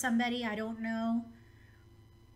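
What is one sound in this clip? A woman speaks briefly into a close microphone.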